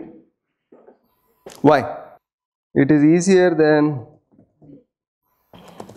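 A middle-aged man speaks calmly into a clip-on microphone.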